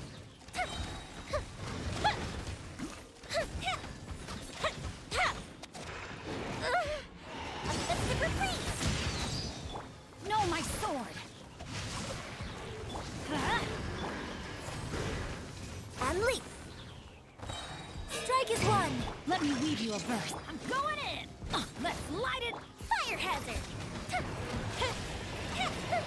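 Magical blasts and explosions crash and whoosh in quick succession.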